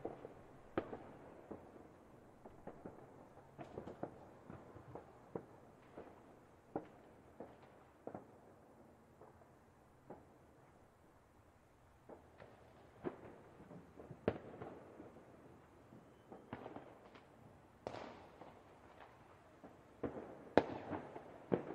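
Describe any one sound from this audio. Fireworks pop and crackle in bursts.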